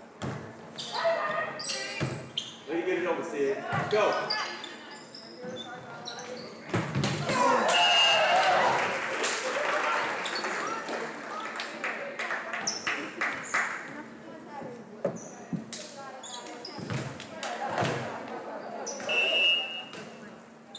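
Young women shout and call to each other on the court.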